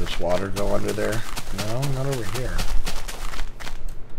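A shovel crunches into soil as blocks are dug.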